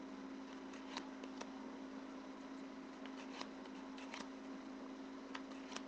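Playing cards tap and rustle softly as they are handled.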